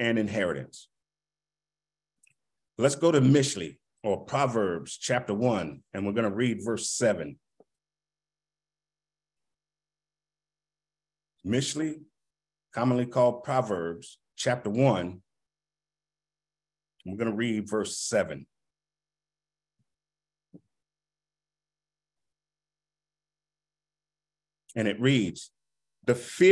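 A man speaks slowly and deliberately into a close microphone, pausing between phrases.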